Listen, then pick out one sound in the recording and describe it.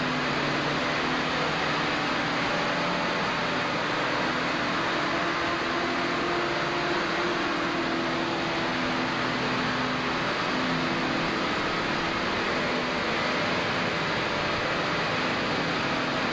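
A jet engine roars steadily nearby.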